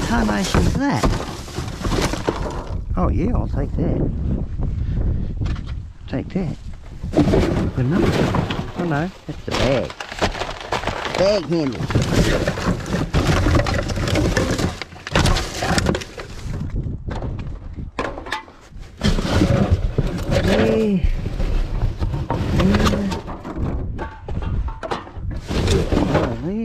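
Plastic bags and wrappers rustle and crackle as hands rummage through rubbish in a bin.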